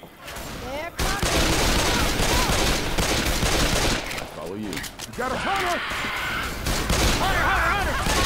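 Pistols fire rapidly in quick bursts.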